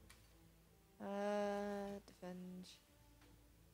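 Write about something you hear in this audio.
A bright electronic chime plays twice in a game.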